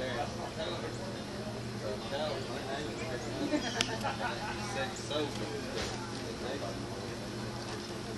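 A raccoon rustles and crinkles a paper food wrapper.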